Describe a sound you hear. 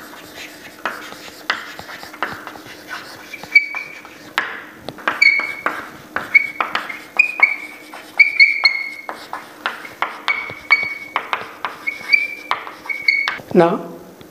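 Chalk taps and squeaks on a blackboard.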